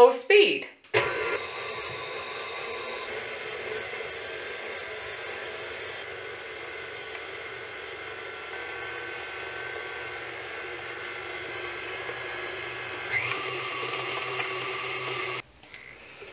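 An electric stand mixer whirs steadily.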